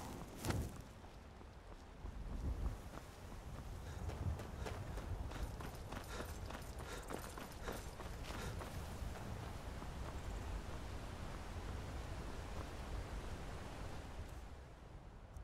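Footsteps crunch steadily on a stone path.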